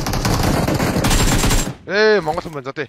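Gunfire bursts loudly in rapid succession.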